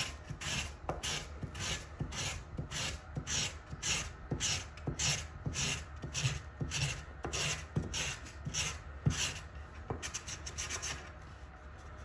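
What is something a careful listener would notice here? Sandpaper rasps back and forth against wood in quick strokes.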